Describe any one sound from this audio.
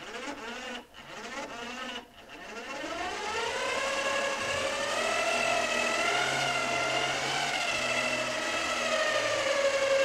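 An electric winch motor whines, rising in pitch and then holding steady.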